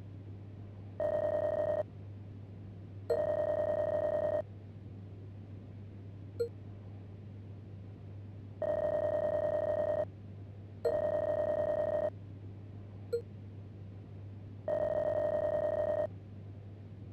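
Short electronic blips chatter quickly in bursts as text prints.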